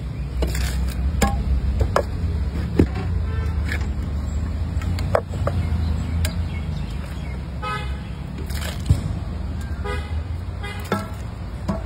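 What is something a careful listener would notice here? Wet chickpeas pour and splash into a pot.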